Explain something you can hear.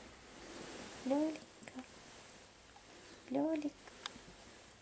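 A baby coos softly up close.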